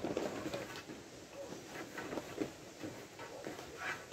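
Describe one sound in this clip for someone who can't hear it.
A pencil scratches across a hard tile surface.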